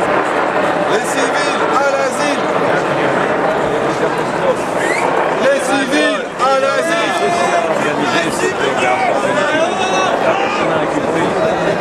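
Men and women in the crowd shout and chant loudly.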